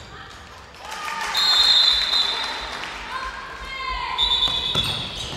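Spectators cheer and clap in a large hall.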